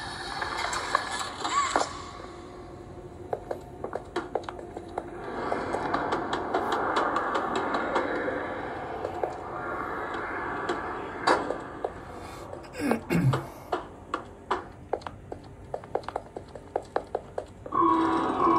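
Fingertips tap quickly on a glass touchscreen.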